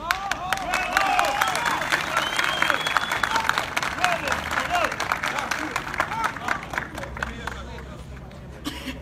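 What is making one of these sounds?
A crowd of men shouts and cheers loudly outdoors.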